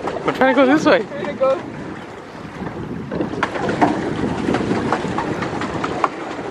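A pedal boat's pedals knock and creak as they turn.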